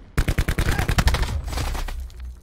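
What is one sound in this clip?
Automatic rifle fire rattles in rapid bursts.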